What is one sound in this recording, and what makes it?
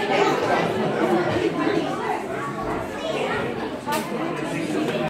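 A woman speaks through a microphone over loudspeakers in an echoing hall.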